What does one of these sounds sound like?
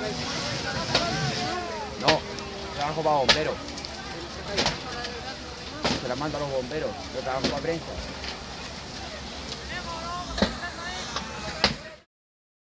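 Burning wood pops and snaps sharply.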